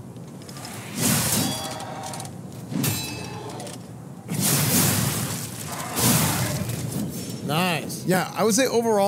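A young man talks calmly into a headset microphone.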